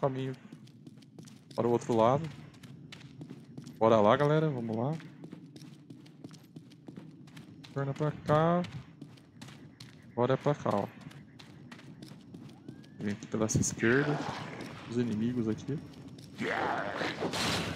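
Footsteps run on a stone floor.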